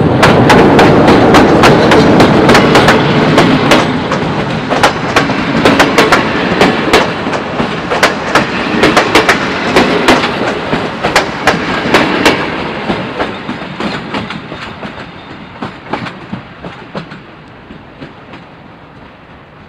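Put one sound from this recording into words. A train rumbles past close by and slowly fades into the distance.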